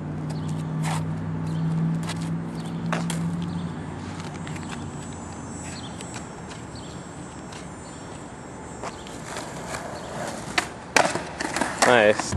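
A skateboard rolls over concrete.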